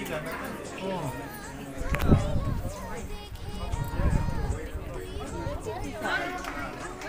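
A crowd of people talk at once in the background.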